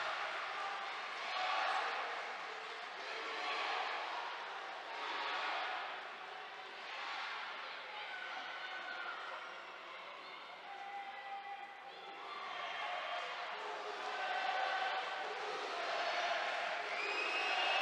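A crowd cheers and shouts in a large arena.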